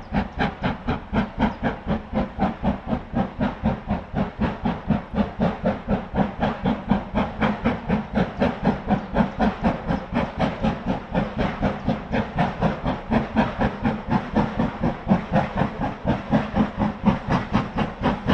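A steam locomotive chuffs hard in a fast, steady rhythm.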